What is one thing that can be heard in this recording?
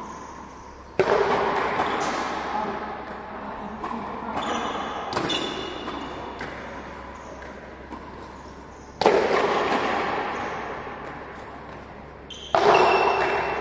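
A ball smacks hard against a wall and echoes through a large hall.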